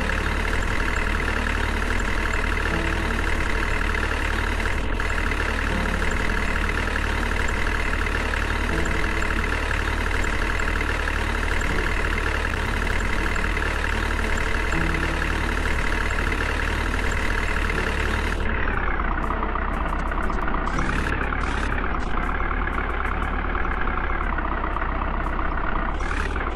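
A truck engine hums steadily as the truck drives along.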